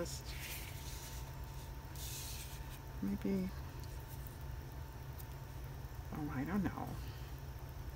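Paper rustles and slides against a table.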